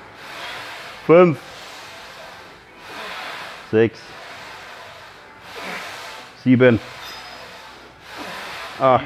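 A young man grunts and strains with effort.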